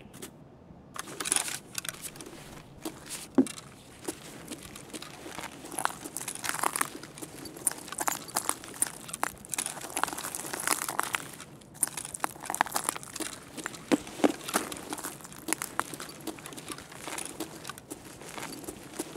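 Footsteps crunch over a gritty floor.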